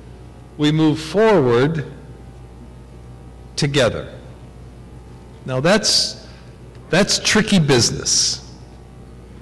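An elderly man speaks with animation into a microphone, in an echoing hall.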